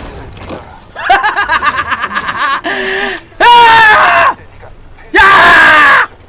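A young man shouts excitedly close to a microphone.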